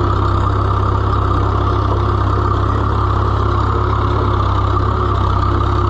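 A tractor's diesel engine chugs loudly and steadily up close.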